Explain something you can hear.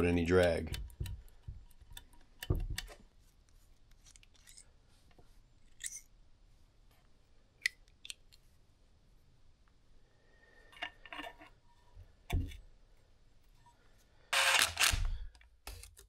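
Metal engine parts clink and click as they are handled up close.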